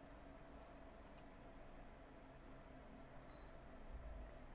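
Short soft interface clicks sound.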